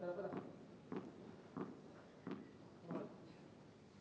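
A ball bounces repeatedly on a hard court floor.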